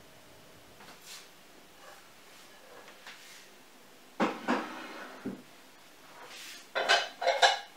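Ceramic dishes clink as they are set down on a table.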